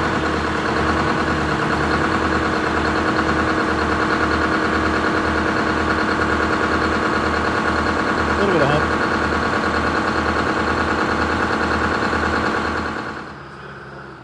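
A large diesel engine idles nearby with a loud, steady, throbbing rumble.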